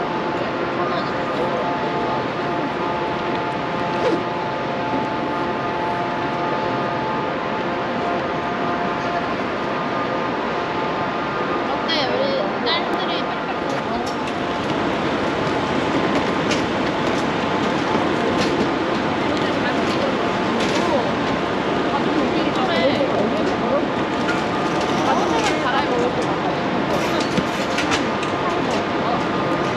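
A steady hum of traffic and crowd noise fills an open outdoor space.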